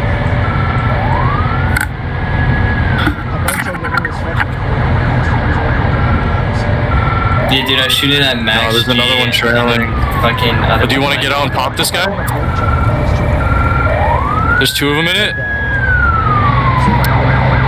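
A police siren wails, rising and falling, several times.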